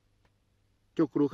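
A man speaks up suddenly and loudly at close range.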